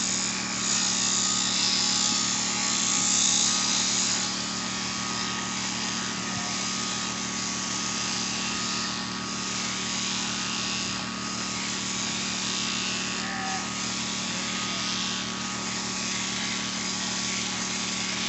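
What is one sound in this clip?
Electric shears buzz steadily while clipping wool.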